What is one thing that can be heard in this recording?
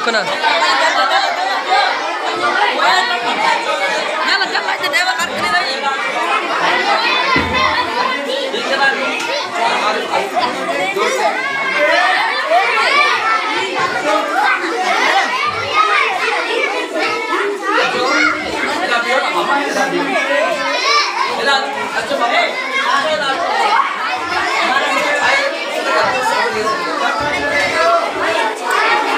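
A crowd of children chatter and shout loudly all around, close by, in an echoing room.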